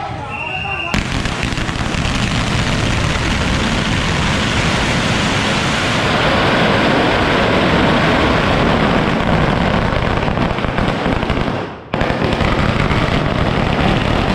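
A long string of firecrackers crackles rapidly and loudly outdoors.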